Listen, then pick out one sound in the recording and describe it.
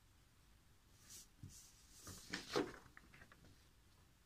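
A sheet of paper rustles as it is lifted and waved.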